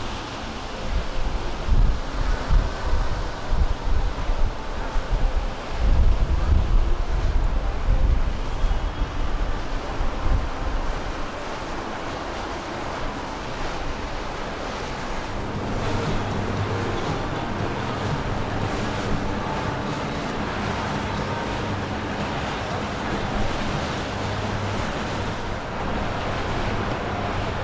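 Water churns and splashes along a moving boat's hull.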